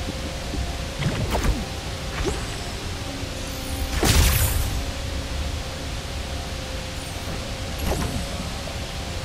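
A small magic bomb bursts with a sharp whoosh.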